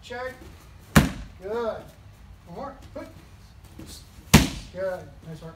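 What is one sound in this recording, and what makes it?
Kicks and punches thud sharply against pads.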